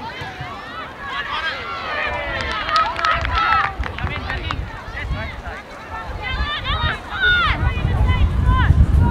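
A crowd of spectators cheers and shouts from nearby.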